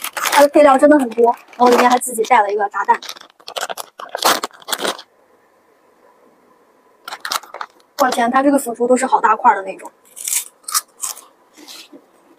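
A foil packet crinkles as it is shaken and torn.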